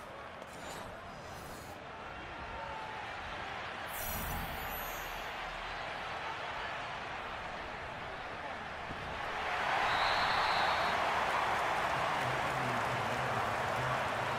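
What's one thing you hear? A large stadium crowd roars steadily, swelling louder after a play.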